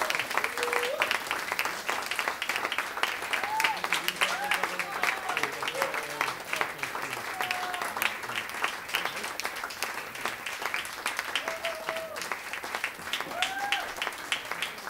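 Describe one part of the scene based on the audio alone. People in an audience cheer and whoop now and then.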